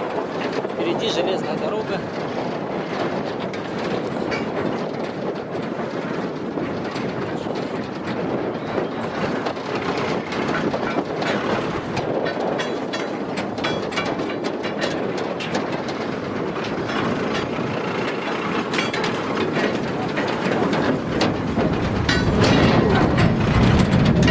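A heavy vehicle engine rumbles steadily while driving over rough ground.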